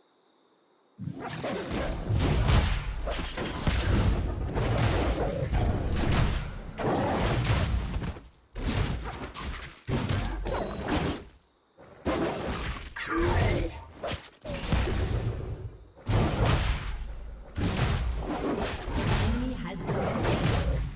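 Fighting effects in a video game clash, whoosh and crackle.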